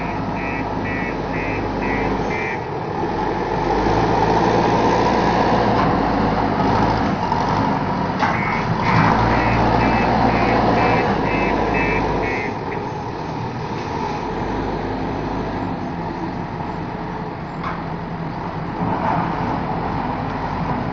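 A loader's diesel engine rumbles and revs nearby.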